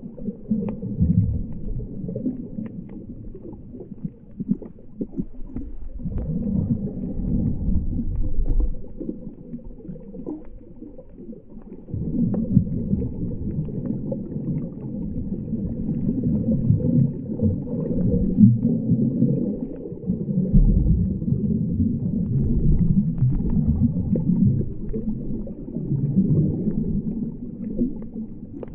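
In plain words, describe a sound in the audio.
Water swirls and rumbles dully underwater.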